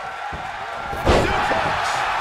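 A body slams down hard onto a wrestling mat.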